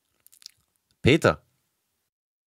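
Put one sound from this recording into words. A man speaks into a microphone up close.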